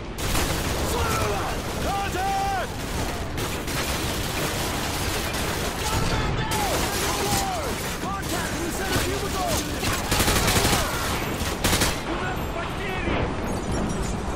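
Men shout to each other over gunfire.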